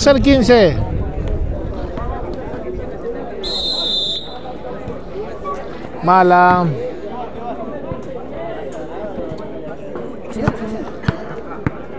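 A crowd of people chatters outdoors at a distance.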